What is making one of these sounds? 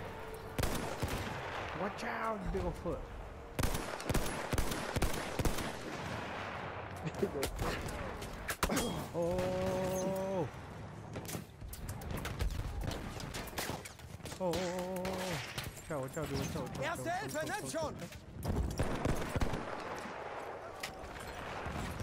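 Rifle shots crack sharply, again and again.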